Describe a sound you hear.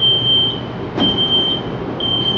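Train doors slide shut with a thud.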